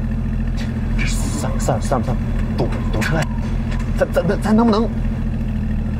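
A young man speaks casually, close by.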